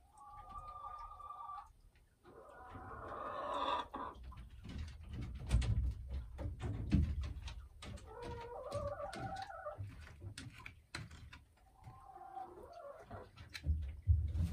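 A hen clucks and squawks close by.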